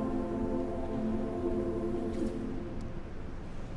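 A large choir of young voices sings a sustained chord that rings out in a reverberant hall.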